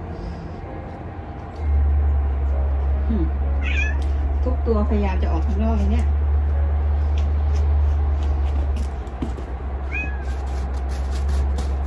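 A small animal pads softly through snow.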